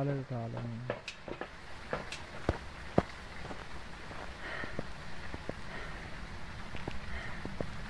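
Footsteps tap slowly on a hard path.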